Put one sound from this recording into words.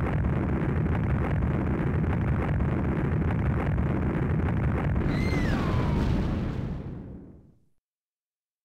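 A huge explosion roars and rumbles, then fades away.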